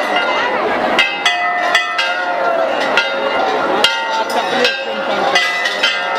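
A metal bell rings repeatedly, loud and close.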